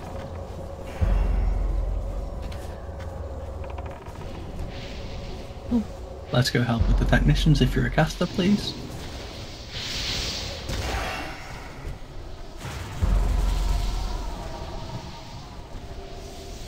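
Rumbling booms of game explosions hit in bursts.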